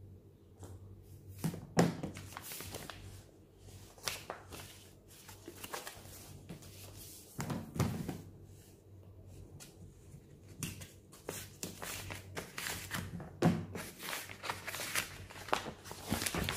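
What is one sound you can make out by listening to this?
A paper envelope rustles and crinkles as hands handle it.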